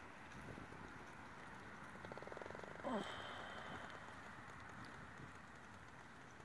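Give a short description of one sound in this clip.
A horse's hooves thud softly on loose sand.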